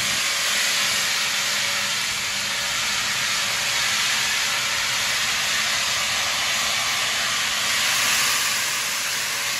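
A steam locomotive hisses loudly as it vents steam.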